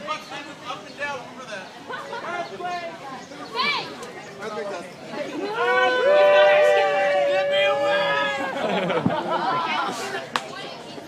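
A crowd of people chatters and cheers outdoors.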